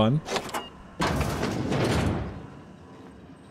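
A heavy metal door unlocks and swings open with a hiss.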